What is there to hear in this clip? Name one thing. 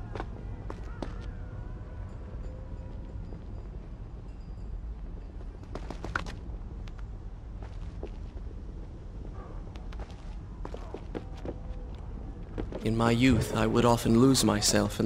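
Quick footsteps tap on stone.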